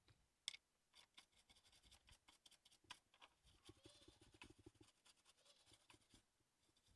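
A tool scrapes and taps on a circuit board.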